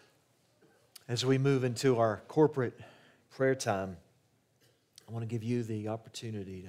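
An older man speaks calmly into a microphone, heard over loudspeakers in a large room.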